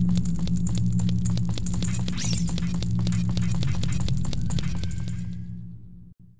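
Quick footsteps patter on stone.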